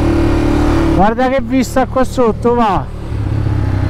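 A motorcycle engine revs sharply in quick bursts.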